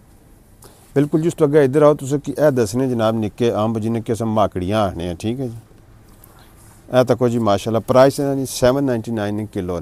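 A middle-aged man talks calmly and close by.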